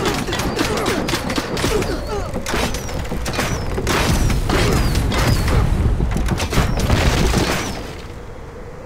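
Battle sounds of clashing weapons and explosions rumble loudly.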